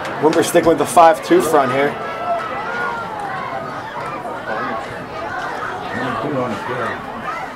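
A crowd cheers and calls out from the stands outdoors.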